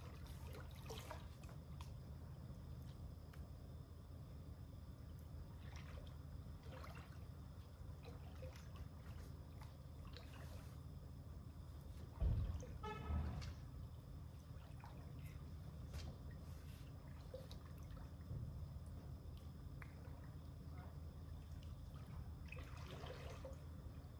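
Water laps and splashes gently in a pool.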